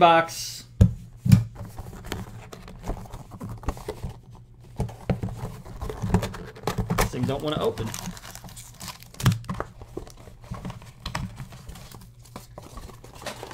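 Plastic wrapping crinkles and rustles as it is torn open.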